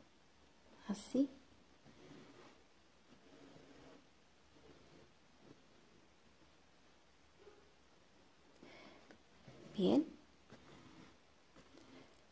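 Thread rasps softly as it is drawn through fabric.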